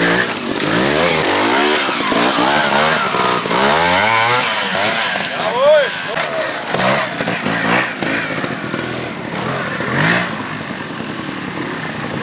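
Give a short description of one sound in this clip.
A motorcycle engine revs up and down in sharp bursts close by.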